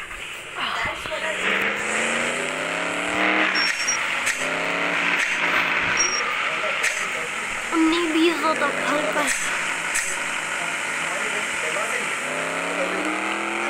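A car engine revs up, rising in pitch again and again as it shifts gears.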